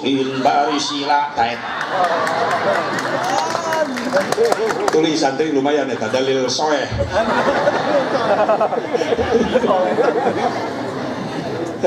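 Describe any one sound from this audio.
An elderly man preaches with animation into a microphone, heard over loudspeakers.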